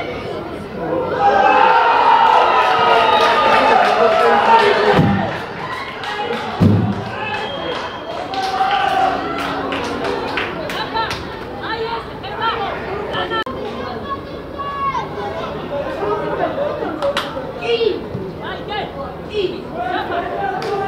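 Boys shout and call to each other across an open field.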